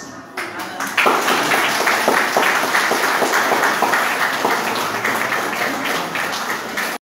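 A crowd claps along in rhythm in an echoing room.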